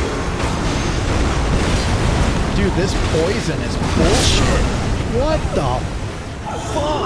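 Weapons clash and strike in a game fight.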